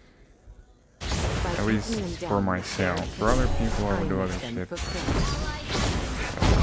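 Magic spells whoosh and burst in quick bursts.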